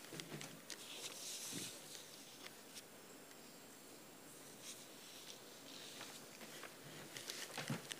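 Papers rustle on a table.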